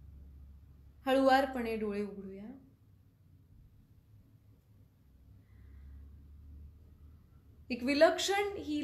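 A young woman speaks calmly and slowly close to a microphone.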